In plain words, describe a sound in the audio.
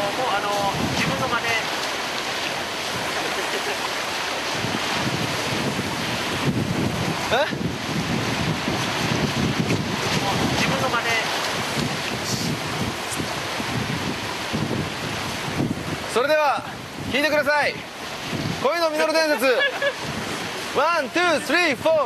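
A young man shouts loudly outdoors.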